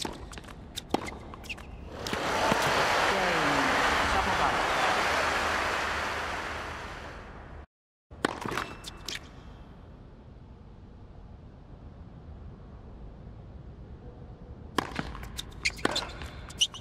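A tennis ball is struck sharply by rackets back and forth.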